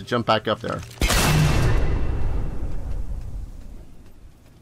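A loud magical blast bursts and rumbles, then fades.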